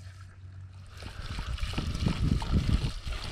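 Fuel gurgles as it pours from a can.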